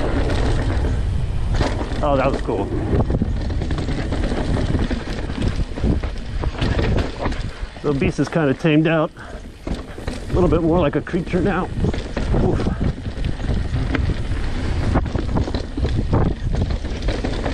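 Knobby bike tyres rumble and crunch over a bumpy dirt trail.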